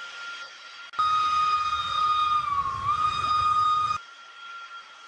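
A small steam whistle blows steadily, then dips in pitch.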